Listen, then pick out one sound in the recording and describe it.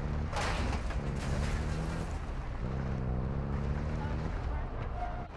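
A vehicle engine rumbles steadily.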